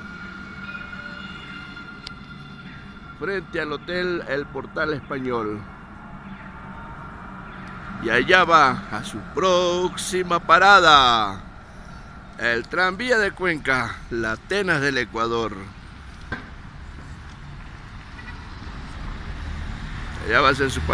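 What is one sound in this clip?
Light street traffic hums in the distance.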